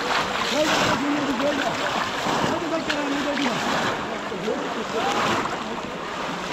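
Men call out and talk loudly to one another outdoors.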